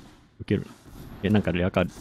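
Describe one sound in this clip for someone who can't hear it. A magical burst crackles as a card is played.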